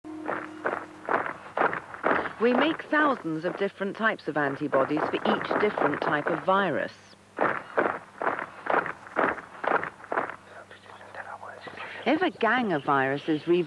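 Cartoon knights march with rhythmic thumping steps.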